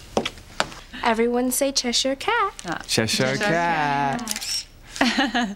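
A teenage girl speaks excitedly and close by.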